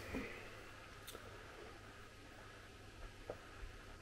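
A man sips from a glass.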